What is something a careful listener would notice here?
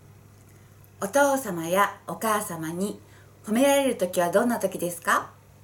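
A woman speaks clearly and calmly close to a microphone.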